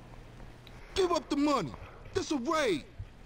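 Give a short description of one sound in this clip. A young man shouts demands aggressively.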